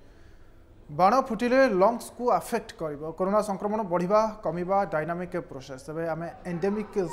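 A young man speaks calmly and clearly into a microphone, like a news presenter.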